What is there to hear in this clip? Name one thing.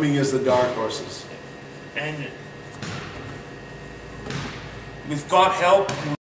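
A young man speaks calmly and close by, with pauses.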